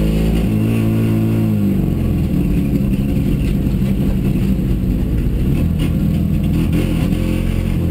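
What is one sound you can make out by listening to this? Gravel and stones rattle against the underside of the car.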